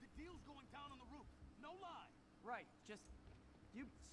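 A man speaks pleadingly, close by.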